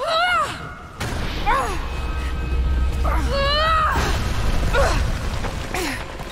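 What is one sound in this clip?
Rocks rumble and crash down heavily.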